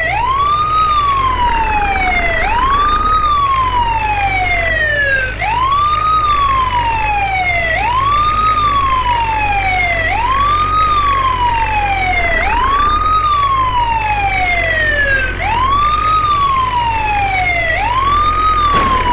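An ambulance siren wails loudly, rising and falling in a repeating cycle.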